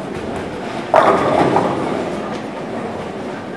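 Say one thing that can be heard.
Bowling pins crash and clatter as the ball strikes them.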